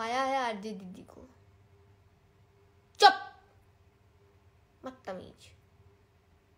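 A young woman speaks close up in short, expressive bursts with long pauses.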